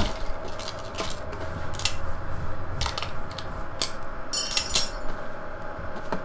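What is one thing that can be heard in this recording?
A rifle bolt clicks and clacks during reloading.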